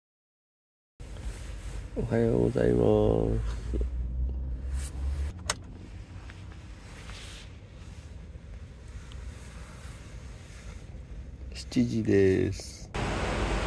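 Bedding rustles as a woman moves under a blanket.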